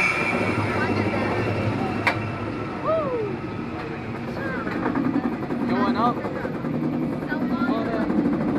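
A roller coaster train clanks steadily up a lift hill.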